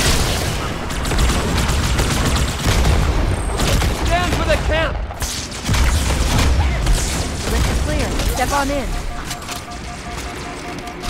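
Rapid gunfire crackles and bursts.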